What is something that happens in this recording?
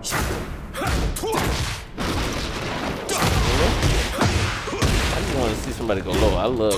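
Punches and kicks land with heavy, quick thuds.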